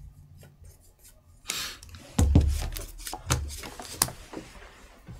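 Playing cards shuffle and tap in hands.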